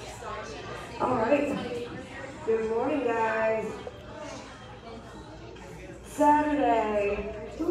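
A woman calls out instructions loudly in an echoing room.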